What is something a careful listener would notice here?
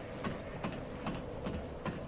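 Armoured footsteps clank on the rungs of a ladder.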